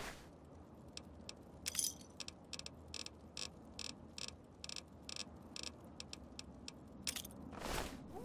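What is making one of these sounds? Menu clicks tick in quick succession.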